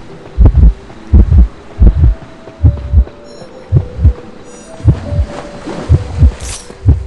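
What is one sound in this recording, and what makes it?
Heavy footsteps thud quickly and steadily as a figure runs.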